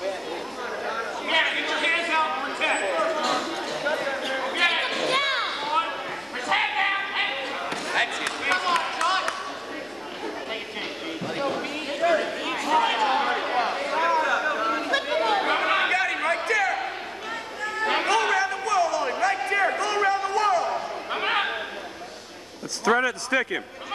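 A crowd of spectators shouts and cheers in a large echoing gym.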